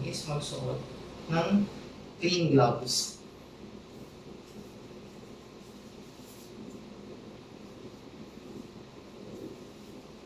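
A plastic glove rustles and crinkles as it is pulled on.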